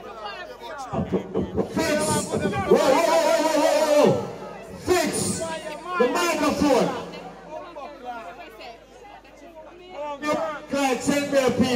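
A second man shouts into a microphone over a loudspeaker.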